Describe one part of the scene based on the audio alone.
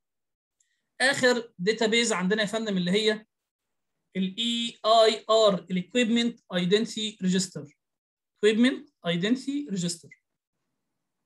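A man lectures calmly, heard close through a microphone.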